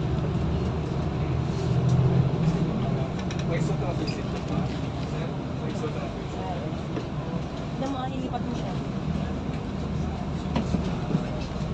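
Tyres rumble on wet pavement.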